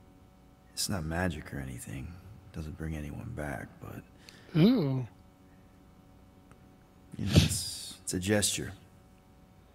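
A young man speaks softly and gently.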